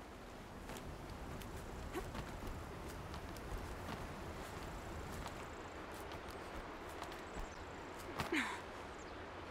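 Wind rushes steadily past during a glide down a cliff.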